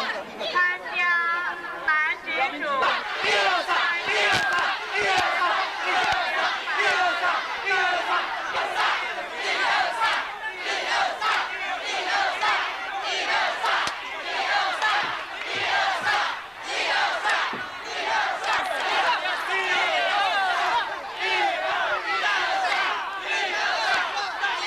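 A large outdoor crowd cheers and shouts throughout.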